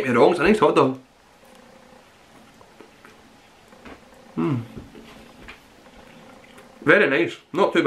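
A young man chews food with his mouth closed.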